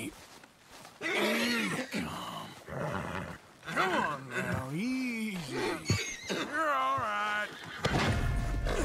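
A man speaks calmly and low.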